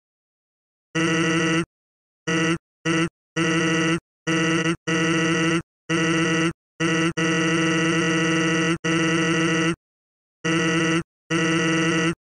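A game's text beeps chatter rapidly in short bursts.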